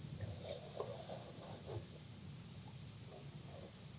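Fingers tap and press lightly on a small circuit board.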